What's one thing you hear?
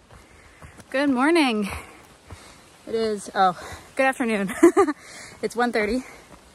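A young woman talks with animation, close to the microphone.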